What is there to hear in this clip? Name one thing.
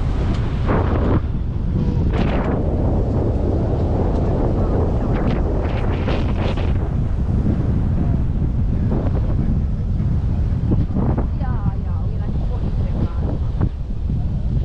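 Wind buffets outdoors, rushing past.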